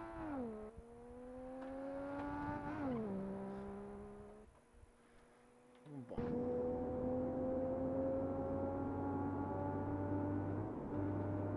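A car engine hums and rises in pitch as it speeds up, dropping with each gear change.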